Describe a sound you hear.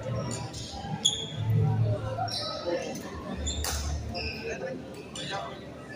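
A racket sharply strikes a shuttlecock several times in a large echoing hall.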